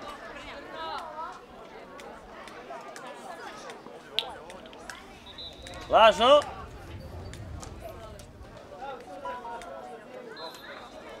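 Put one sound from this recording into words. Young players shout and call out to each other across an open field.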